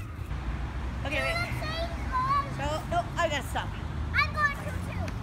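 Children laugh while swinging.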